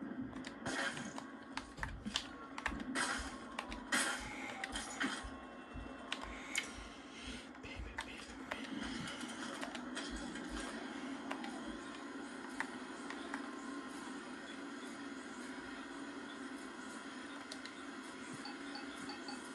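Game sound effects and music play from a television speaker.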